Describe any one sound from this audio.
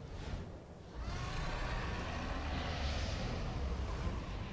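A large dragon's wings whoosh as it flies overhead.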